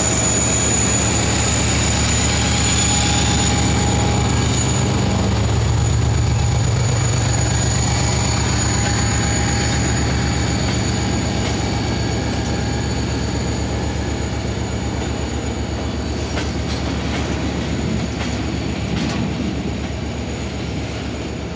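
Freight wagons clatter rhythmically over rail joints.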